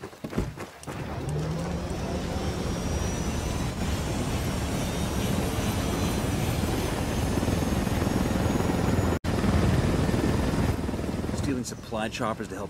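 A helicopter's rotor and engine roar loudly and steadily.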